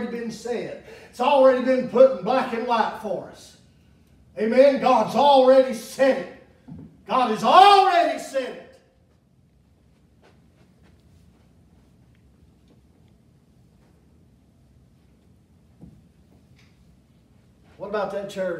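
A man preaches loudly and with animation in an echoing room.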